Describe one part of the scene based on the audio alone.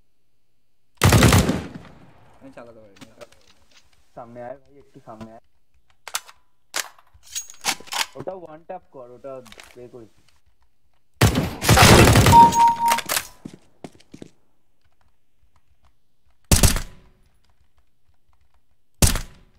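Loud rifle shots bang and echo.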